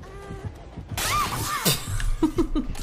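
A heavy blow strikes with a sudden crash.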